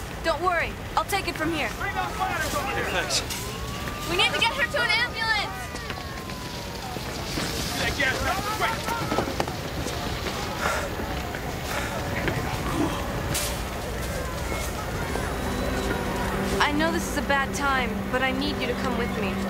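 A young woman speaks urgently, close by.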